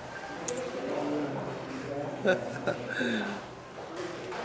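Men talk and laugh nearby.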